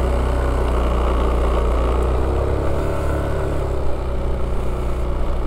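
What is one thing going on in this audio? Small wheels roll steadily over asphalt with a low hum.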